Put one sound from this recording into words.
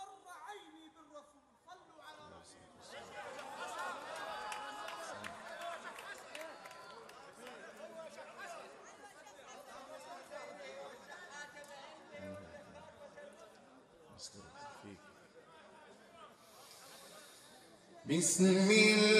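A crowd of men calls out and murmurs.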